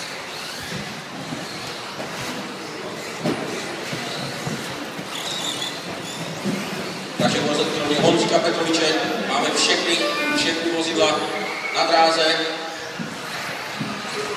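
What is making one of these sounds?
Small electric model cars whine and buzz as they race around in an echoing hall.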